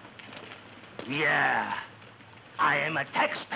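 An elderly man shouts angrily.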